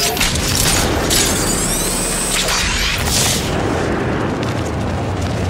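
Wind rushes loudly past a figure gliding through the air.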